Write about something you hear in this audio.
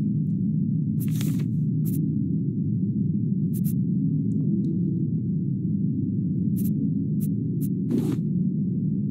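Short clicks sound as items are picked in a menu.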